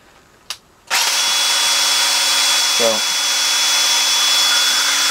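A cordless drill whirs steadily as it spins an auger in soil.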